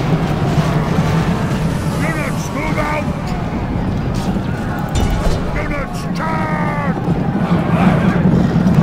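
Swords and shields clash and clang.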